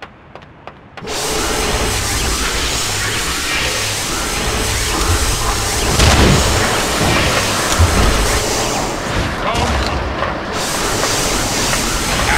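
An electric beam crackles and buzzes loudly.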